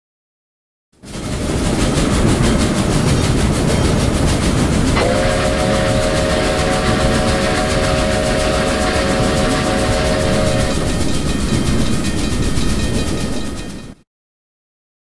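A train rumbles and clatters along the rails.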